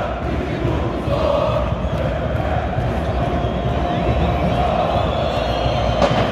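A large stadium crowd chants loudly in unison, echoing around the stands.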